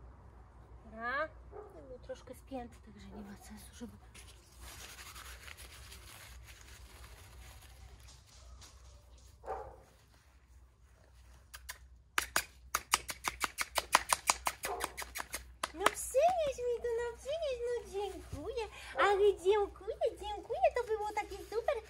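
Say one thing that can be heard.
A young woman talks in a high, coaxing voice close by.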